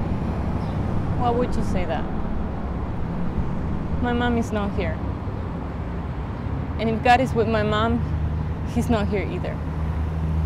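A young woman speaks quietly and tearfully nearby.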